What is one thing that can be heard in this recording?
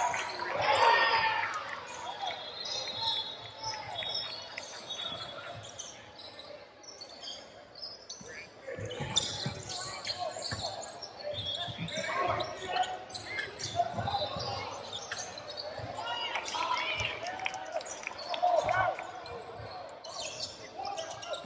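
Young players shout to each other across an echoing gym.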